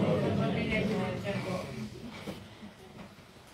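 An accordion plays a slow tune in a large echoing hall.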